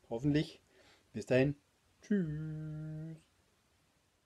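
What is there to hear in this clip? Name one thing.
A middle-aged man speaks close to a microphone in short, lively words, then draws out a long held sound.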